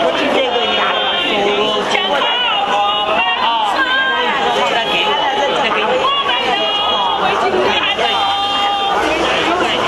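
A woman speaks excitedly close by.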